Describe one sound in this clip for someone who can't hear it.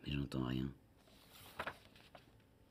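Paper pages rustle as a page is turned.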